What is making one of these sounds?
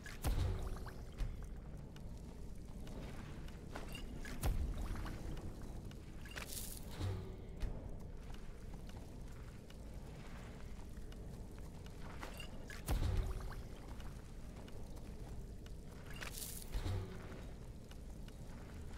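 Soft game menu sounds chime as items are picked.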